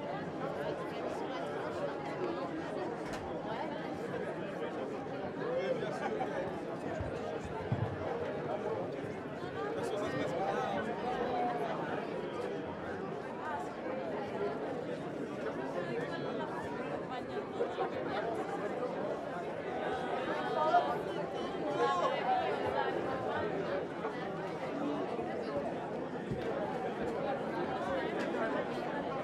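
A crowd of men and women chatters loudly all around in a busy, echoing room.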